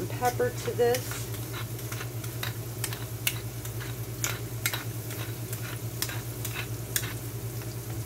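A pepper mill grinds with rapid clicks.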